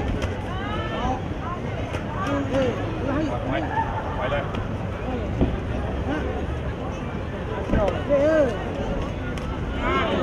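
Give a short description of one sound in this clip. Boxing gloves thud against each other and bodies.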